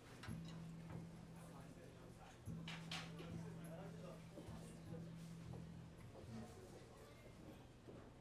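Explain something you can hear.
Drums and cymbals play softly.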